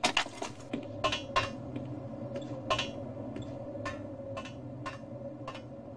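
Footsteps clang on metal grating.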